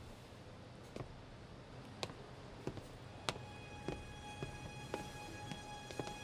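High heels click steadily on a hard floor.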